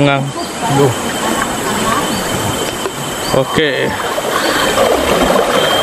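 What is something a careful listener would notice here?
Water splashes as a man wades through a shallow river.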